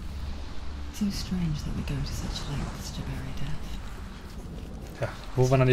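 A man talks calmly close to a microphone.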